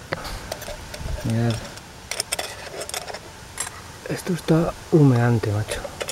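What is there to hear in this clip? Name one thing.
A metal pot lid scrapes and clanks as a knife pries it up.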